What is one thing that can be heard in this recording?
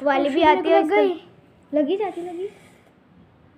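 A young girl speaks with animation close by.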